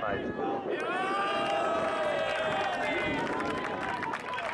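A group of young men cheers and shouts.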